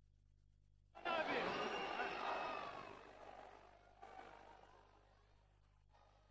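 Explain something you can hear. A crowd applauds.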